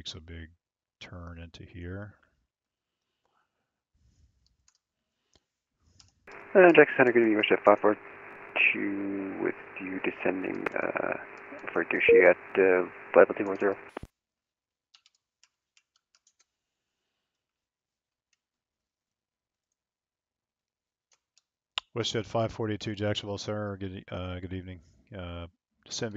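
A young man speaks calmly and briskly into a close headset microphone, in short bursts with pauses.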